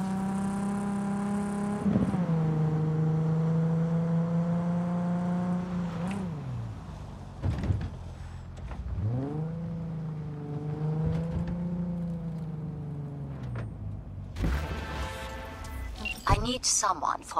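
A car engine roars and changes pitch as the car speeds along.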